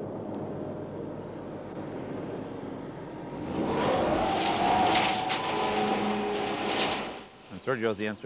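A heavy truck engine rumbles as the truck drives closer.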